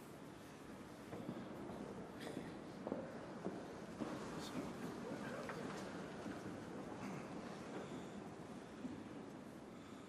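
People rise from wooden pews with shuffling and creaking in a large echoing hall.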